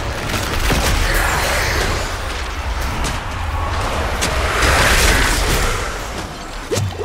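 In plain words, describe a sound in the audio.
Magic blasts roar and crash in a fight.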